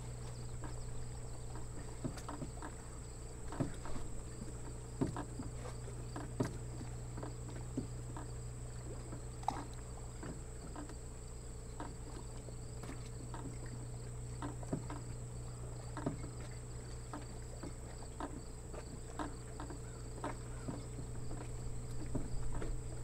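Water laps softly against a dock.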